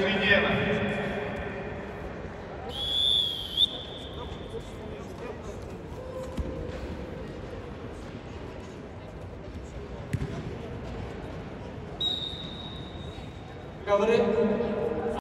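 A man shouts loudly in an echoing hall.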